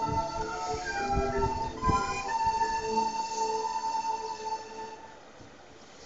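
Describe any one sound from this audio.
A group of children sings together in a large room.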